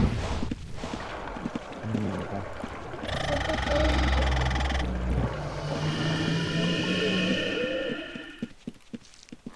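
Magic spells crackle and whoosh in bursts.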